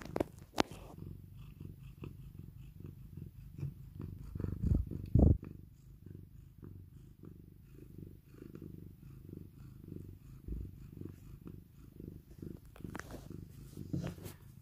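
A cat purrs loudly and steadily, very close.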